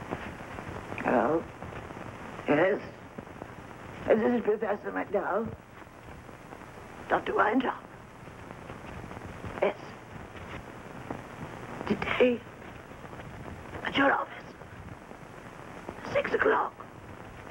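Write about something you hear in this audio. An elderly woman speaks into a telephone in short, anxious bursts with pauses between.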